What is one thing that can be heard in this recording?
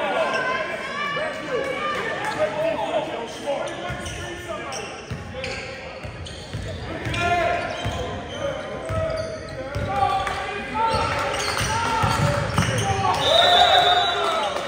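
Men talk and shout in a large echoing gym.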